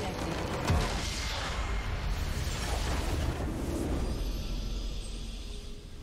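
A crystal structure shatters with a loud crash and rumble.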